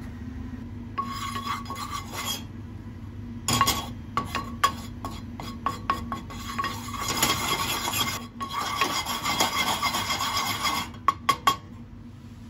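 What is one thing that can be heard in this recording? A wooden spatula scrapes and stirs powder in a metal pan.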